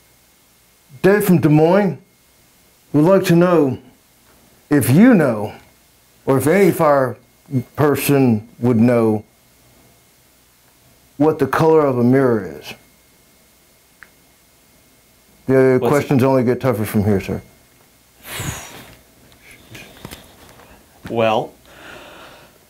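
A middle-aged man reads out lines in short, lively bursts, close by.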